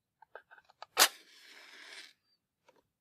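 A match flares up with a sudden sharp hiss.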